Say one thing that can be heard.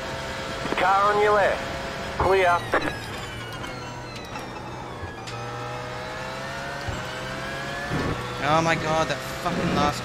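A race car engine blips sharply on downshifts.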